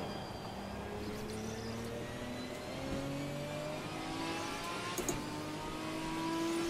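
A racing car engine revs higher and higher, dropping briefly as it shifts up a gear.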